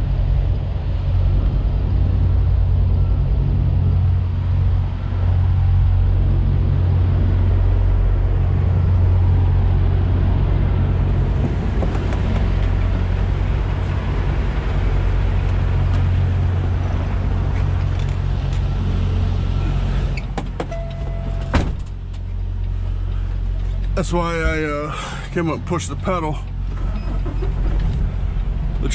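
A large diesel engine idles with a deep, steady rumble.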